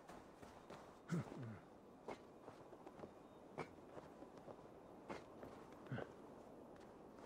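Hands and feet scrape and thud while climbing a wall.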